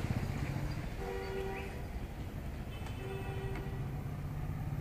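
A handheld diagnostic scanner beeps.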